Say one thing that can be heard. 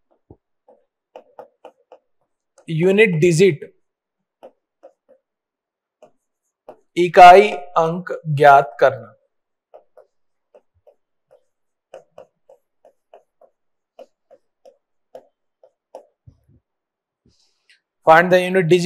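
A marker taps and squeaks on a board.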